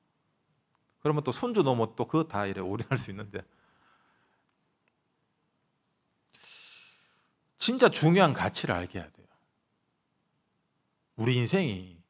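A young man speaks calmly into a microphone, with pauses between phrases.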